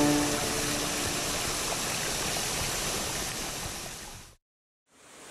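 Water rushes and splashes steadily down a waterfall.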